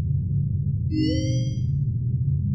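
An electronic menu beeps as its page changes.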